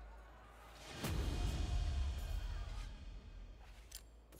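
A deep, booming fanfare swells for a victory.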